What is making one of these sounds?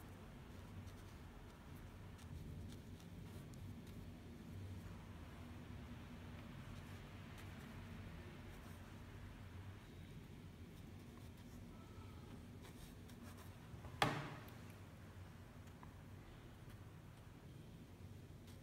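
An ink brush brushes on paper.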